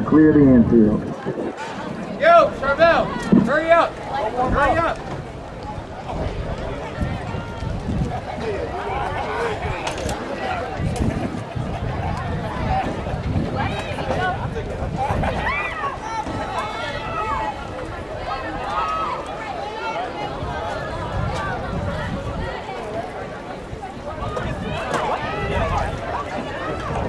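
A crowd of spectators chatters and calls out close by, outdoors.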